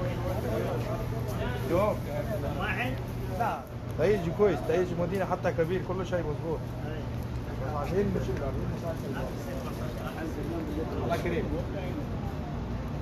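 Men talk with each other close by.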